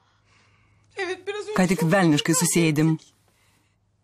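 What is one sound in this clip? A woman speaks urgently into a phone.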